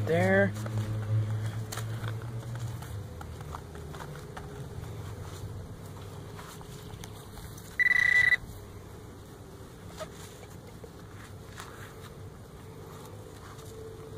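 A gloved hand pats and presses loose soil.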